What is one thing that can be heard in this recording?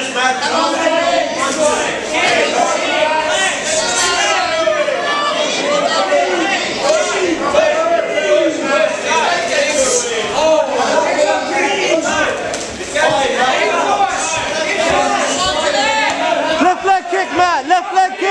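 A crowd of men and women shouts and cheers loudly nearby.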